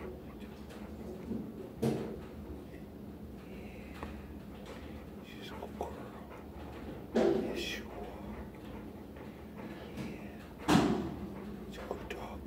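A dog pants with its mouth open, close by.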